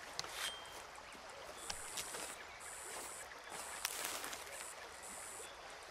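Leaves and stems rustle as a plant is plucked.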